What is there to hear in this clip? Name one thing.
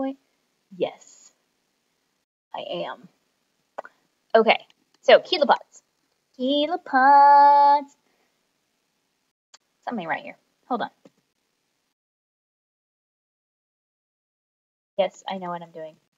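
A young woman speaks calmly into a microphone, in short phrases with pauses.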